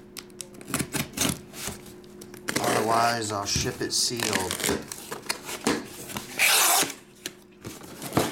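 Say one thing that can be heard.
A cardboard box is handled, scraping and bumping on a table.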